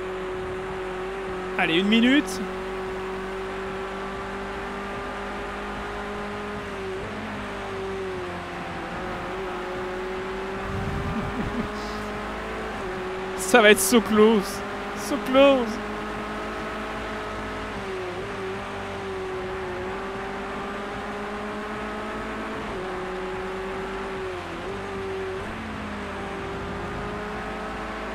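A racing car engine drones steadily, rising and falling as the car shifts gear.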